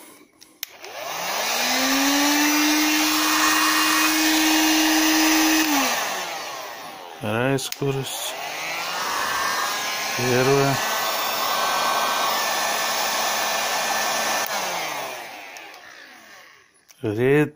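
A heat gun blows with a loud, steady whirring roar that rises as it starts and dies away as it stops.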